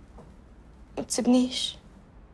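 A teenage boy answers briefly close by.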